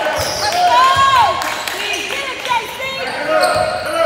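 A basketball is dribbled on a hardwood floor.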